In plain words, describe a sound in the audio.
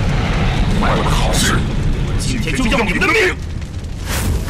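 A man speaks menacingly.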